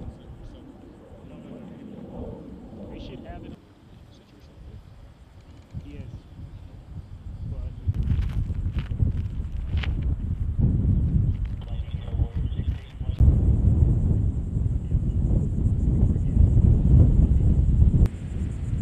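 Wind blows outdoors, rumbling in gusts.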